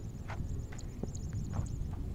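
A cricket bat strikes a ball far off with a faint knock.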